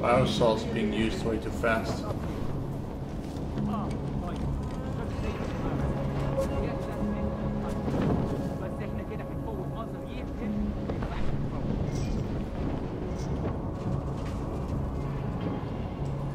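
Footsteps shuffle softly across a gritty floor.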